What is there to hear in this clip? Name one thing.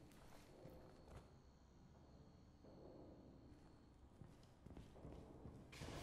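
A handgun fires a series of shots.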